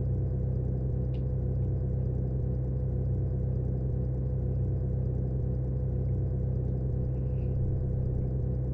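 A car engine hums steadily at low pace.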